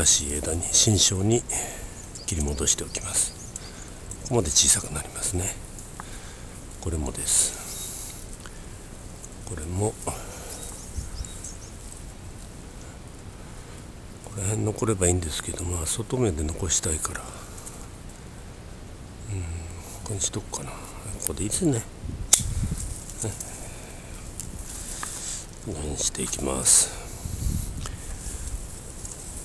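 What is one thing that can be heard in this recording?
Leaves rustle as a hand pushes through a shrub.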